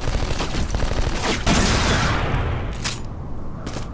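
A rifle fires a loud shot that echoes.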